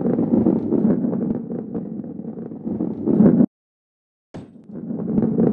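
A heavy ball rolls and rumbles along a wooden track.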